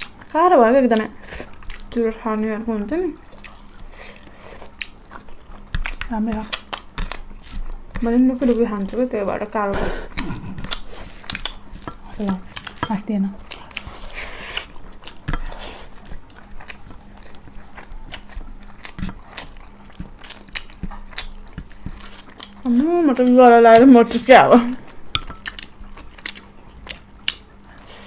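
Food is chewed with wet, smacking sounds close up.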